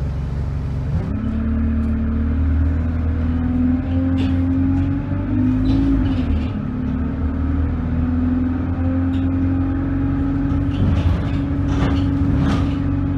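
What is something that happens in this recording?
A bus engine revs up and hums as the bus pulls away.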